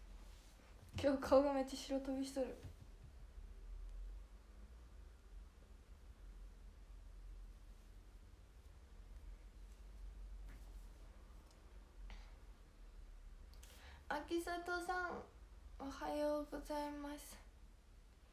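A young woman speaks close by, softly and with pauses.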